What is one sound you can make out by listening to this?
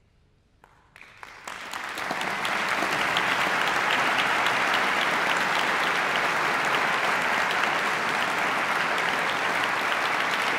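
A large audience applauds loudly and steadily.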